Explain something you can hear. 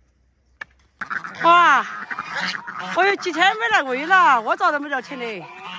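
Hens cluck.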